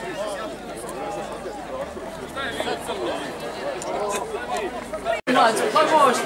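A crowd of men and women chatters outdoors.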